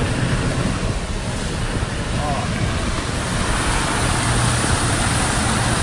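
Floodwater rushes and splashes beneath a moving car.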